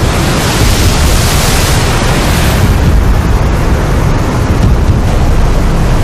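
Strong wind rushes loudly.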